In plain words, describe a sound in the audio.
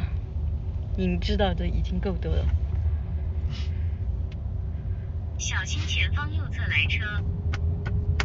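A young woman speaks close by, softly and casually.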